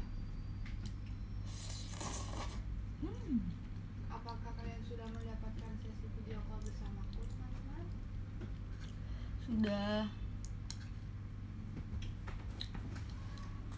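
A young woman slurps noodles.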